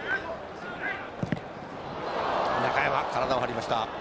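A football thuds off a player's boot.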